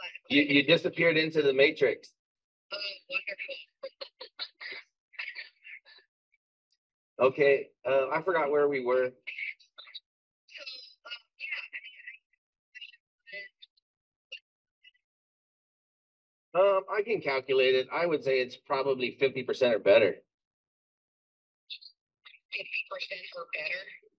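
A man speaks casually into a microphone, with pauses and hesitations.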